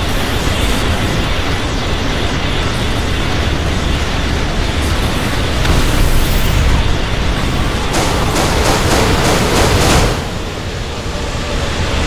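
Explosions and energy blasts from a battle rumble and crackle.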